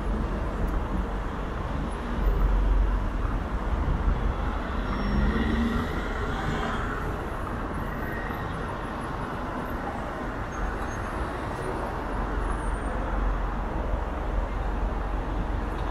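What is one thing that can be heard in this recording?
Cars drive past on the road.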